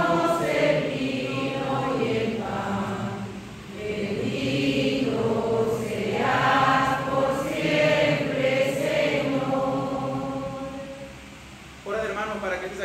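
A man sings slowly through a microphone in an echoing hall.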